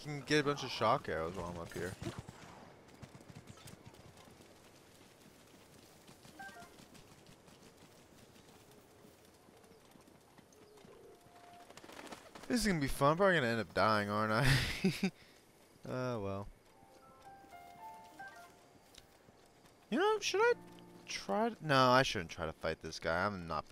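Footsteps run quickly across grass.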